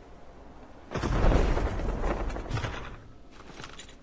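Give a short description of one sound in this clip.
A crate lid bangs open with a rustling burst.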